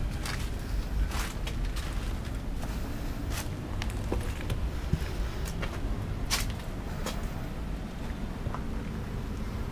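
Footsteps crunch on debris underfoot.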